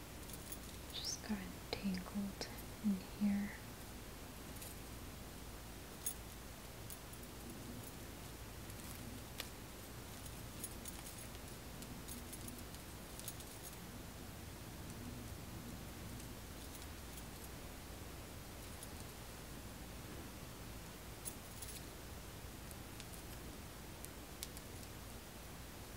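Hair rustles softly as fingers twist and braid it.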